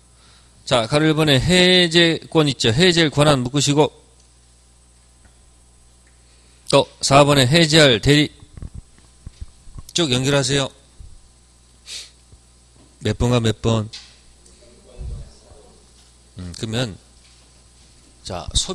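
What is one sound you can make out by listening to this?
A man speaks with animation through a microphone, in bursts with pauses.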